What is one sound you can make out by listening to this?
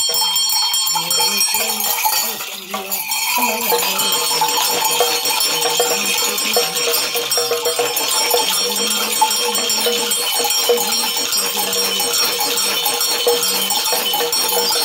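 Small metal trinkets jingle on a shaken staff.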